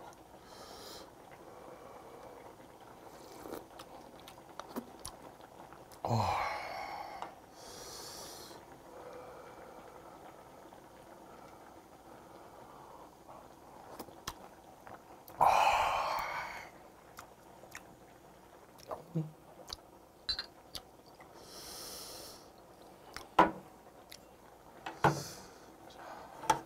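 A man chews and smacks his lips close up.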